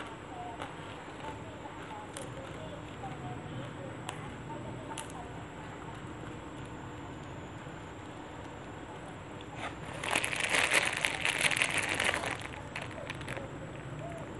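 Fresh leaves rustle and snap as they are torn apart by hand.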